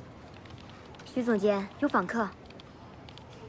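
A young woman announces a visitor, nearby.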